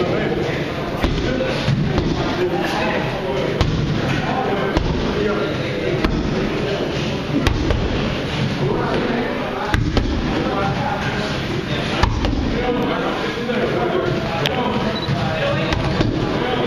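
Boxing gloves smack against punch mitts in sharp bursts.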